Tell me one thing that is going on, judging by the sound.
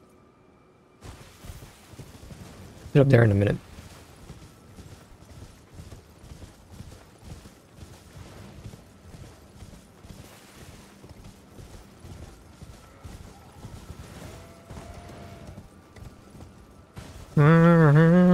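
A horse gallops, its hooves thudding steadily on the ground.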